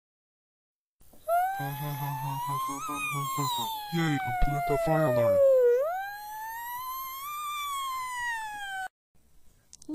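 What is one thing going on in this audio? A fire alarm wails with a rising and falling tone.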